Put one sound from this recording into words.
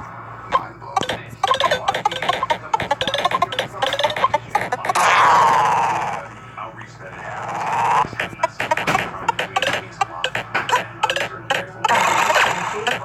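Quick electronic game blips chime in rapid bursts.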